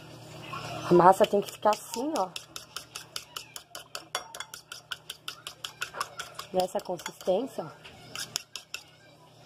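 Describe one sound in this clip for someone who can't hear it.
A fork whisks quickly against a ceramic plate, clinking in a fast, steady rhythm.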